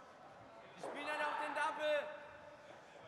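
A man shouts loudly in a large echoing hall.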